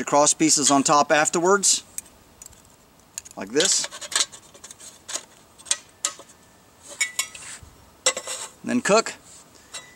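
A metal can clinks and taps against metal.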